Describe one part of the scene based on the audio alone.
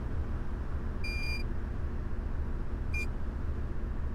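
A ticket machine beeps twice.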